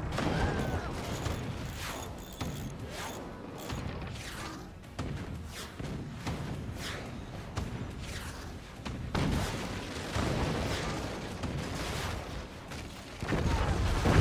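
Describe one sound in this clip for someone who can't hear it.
Explosions thud and crackle as a fort is shelled.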